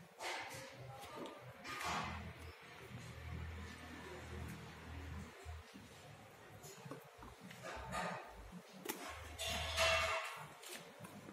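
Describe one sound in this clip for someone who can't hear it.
Plastic paint pots are picked up and set down with light knocks and rustles.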